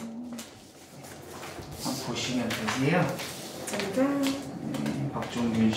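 Paper rustles as a sheet is handed over.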